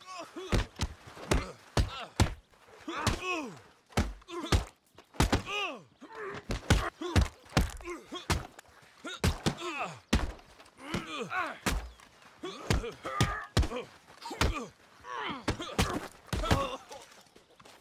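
Fists thud heavily in a brawl, with sharp punches landing again and again.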